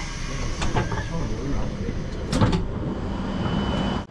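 A train door slides open.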